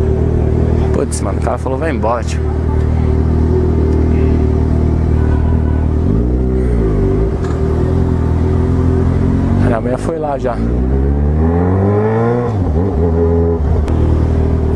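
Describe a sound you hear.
A motorcycle engine revs up and down sharply, again and again.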